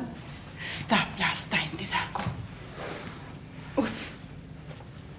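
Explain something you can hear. An elderly woman speaks urgently nearby.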